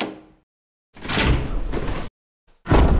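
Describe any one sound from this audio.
A heavy door creaks open loudly.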